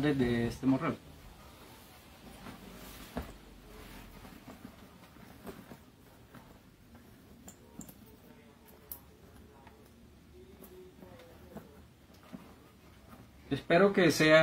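Leather rustles and creaks as a bag is handled.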